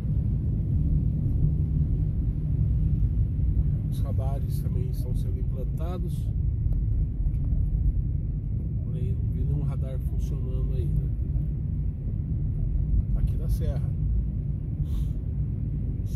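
Heavy rain drums on a car's roof and windscreen.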